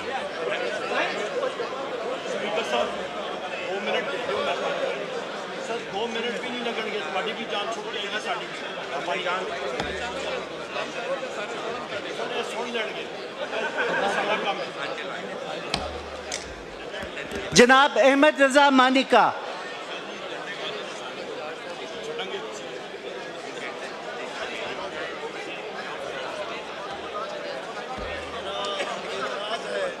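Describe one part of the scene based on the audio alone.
Many men murmur and chatter at once in a large echoing hall.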